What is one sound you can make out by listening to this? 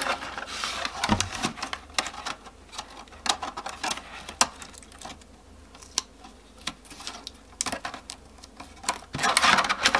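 Tape rustles as it is pressed onto plastic.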